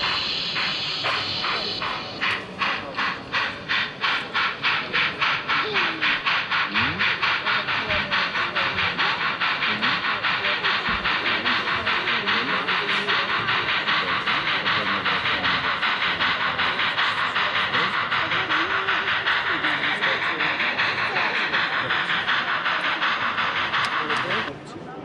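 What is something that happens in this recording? A model steam locomotive chuffs rhythmically, its puffs quickening as it gets going.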